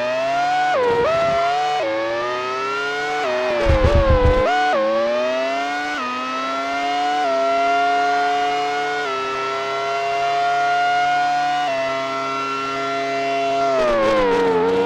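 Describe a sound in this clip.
A high-revving Formula One car engine climbs in pitch and drops with each upshift through the gears.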